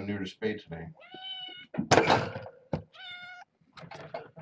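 Kittens meow loudly close by.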